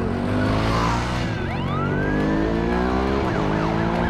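A motorcycle engine rumbles as it rides away.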